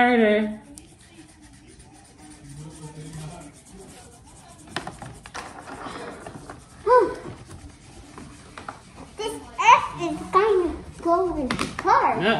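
Crayons scratch softly on paper.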